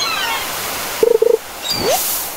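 A fishing float bobs with a short watery plop as a fish bites.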